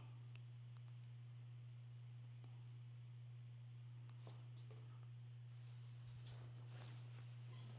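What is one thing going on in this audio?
Fabric rustles softly as it is folded and handled.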